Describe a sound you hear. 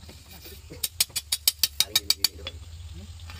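A hammer strikes hot metal in quick, ringing blows.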